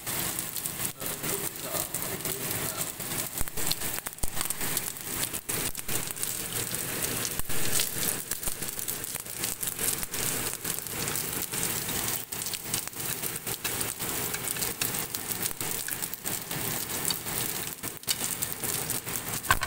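Small fish sizzle and crackle as they fry in a pan.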